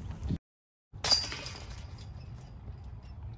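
Metal chains rattle as a disc hits a basket.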